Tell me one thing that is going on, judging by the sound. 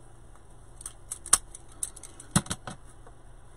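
Wire cutters snip through wire with sharp clicks.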